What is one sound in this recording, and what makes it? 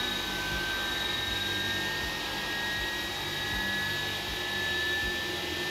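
Jet engines whine steadily at idle.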